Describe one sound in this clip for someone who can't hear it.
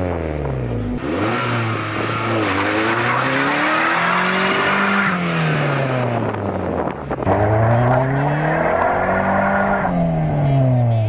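Tyres squeal and hiss as they spin on asphalt.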